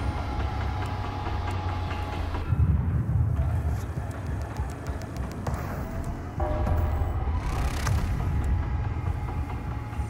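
Menu selections click and beep softly.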